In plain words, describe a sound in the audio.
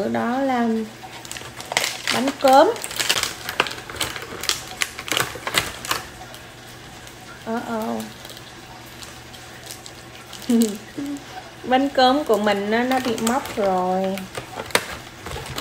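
Plastic packaging crinkles and rustles in hands.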